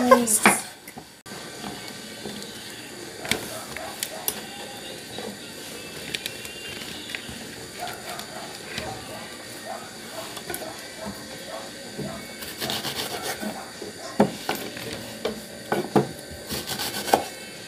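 A knife cuts through vegetables and taps on a wooden cutting board.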